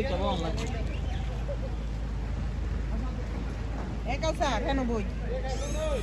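Shallow water trickles over stones.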